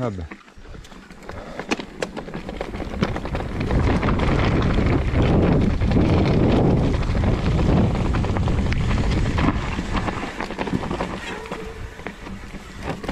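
A bike's chain and frame rattle over bumps.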